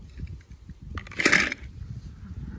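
A small toy car clatters against a plastic bowl.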